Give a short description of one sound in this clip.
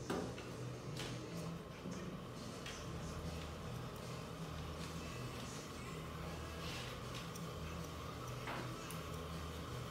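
Scissors snip close by.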